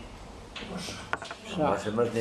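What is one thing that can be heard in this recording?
A wooden chess piece taps down on a board.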